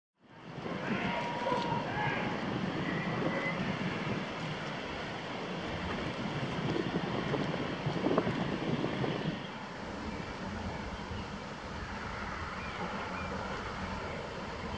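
Wind blows outdoors across open water.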